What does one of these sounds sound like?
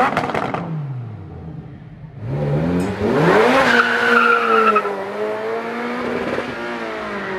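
A sports car engine revs up and roars loudly as it accelerates.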